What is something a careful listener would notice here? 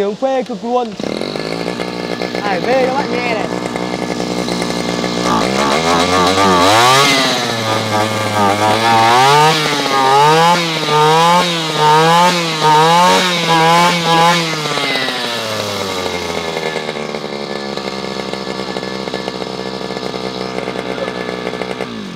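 A small petrol engine starts and idles steadily.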